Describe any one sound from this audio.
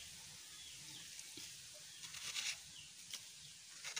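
Plastic wrap crinkles as a hand presses it over the end of a bamboo tube.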